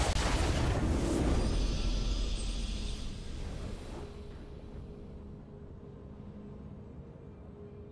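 A game's victory fanfare swells and fades out.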